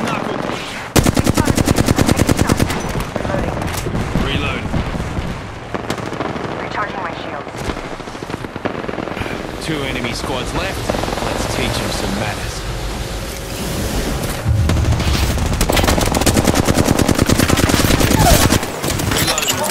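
A rapid-fire gun shoots in bursts.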